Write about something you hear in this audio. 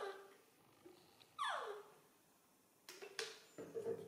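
Water pours from a plastic bottle into a small baby bottle.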